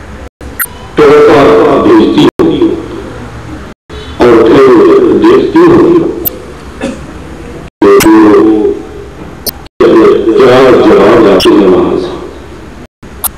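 An elderly man speaks loudly through a microphone, in bursts with pauses.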